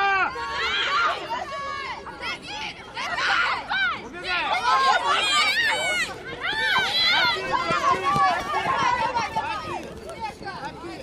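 Young women shout and cheer excitedly outdoors.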